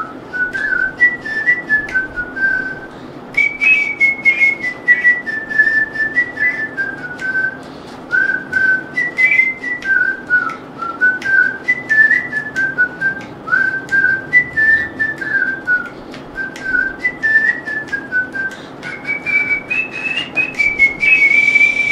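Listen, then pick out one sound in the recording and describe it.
A flute plays a melody up close.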